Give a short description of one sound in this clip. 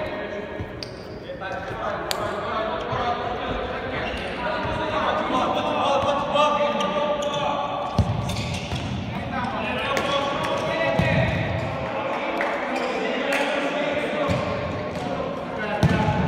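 A futsal ball is kicked and bounces on a hard indoor court in an echoing hall.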